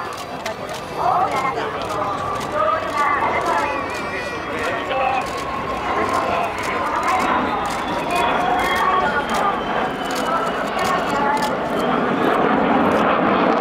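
A jet plane roars overhead, growing louder.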